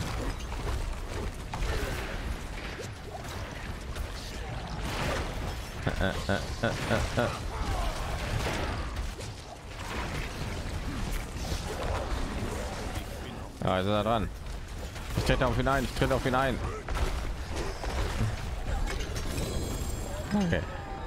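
Spell blasts and weapon hits crash and crackle again and again in a game fight.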